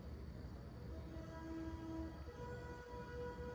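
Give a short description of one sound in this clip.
Soft music plays from a television speaker.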